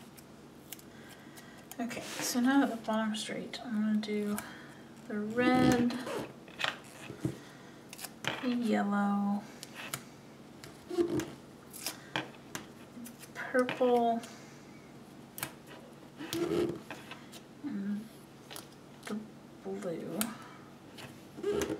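Paper rustles and crinkles as stickers are pressed down by hand.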